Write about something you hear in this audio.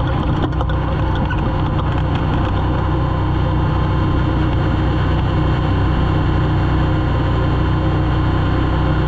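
The car body rattles and knocks over rough ground.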